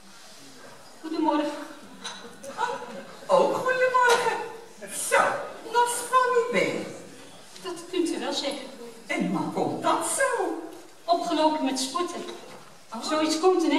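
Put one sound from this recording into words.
Women speak with animation on a stage, heard from the audience in a large hall.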